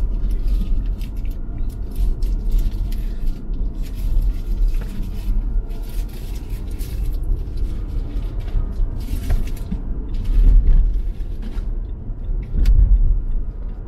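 Wind rushes and buffets around a moving car.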